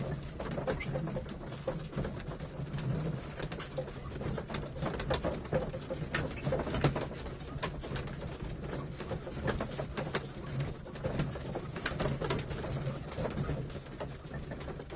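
Footsteps walk steadily across a wooden floor.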